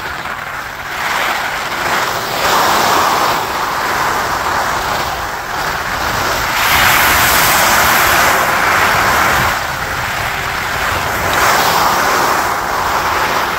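Skis scrape and hiss over packed snow, swelling and easing with each turn.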